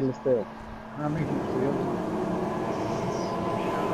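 A racing car engine revs loudly and holds a steady roar.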